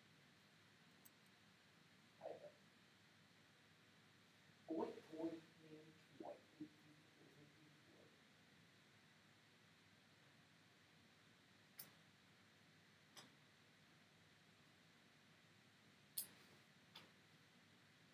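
Short digital game sound effects chime and click now and then.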